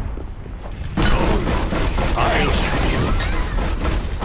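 Explosive blasts boom loudly in quick succession.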